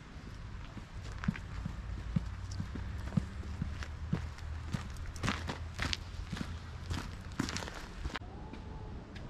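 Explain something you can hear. Footsteps crunch on a gravel path, coming closer.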